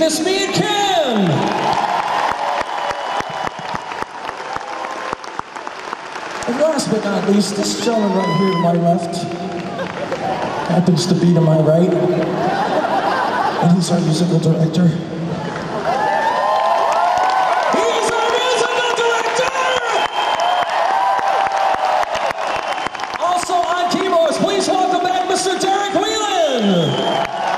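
A rock band plays loudly in a large echoing hall.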